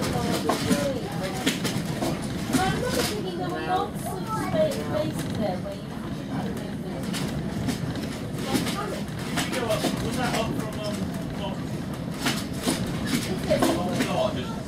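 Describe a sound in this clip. A train rumbles and rattles steadily along the track.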